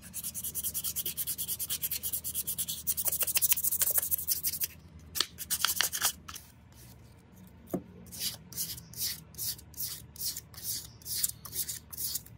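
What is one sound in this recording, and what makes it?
Sandpaper rubs over a wooden handle in quick back-and-forth strokes.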